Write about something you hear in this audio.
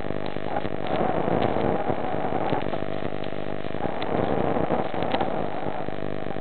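Air bubbles rush and gurgle underwater in bursts.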